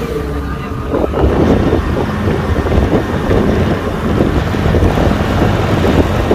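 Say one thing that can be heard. A tractor engine chugs just ahead.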